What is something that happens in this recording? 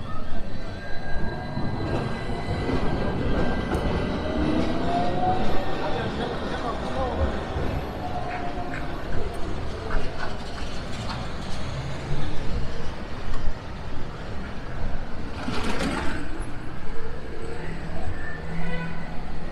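Traffic rumbles steadily through a busy city street outdoors.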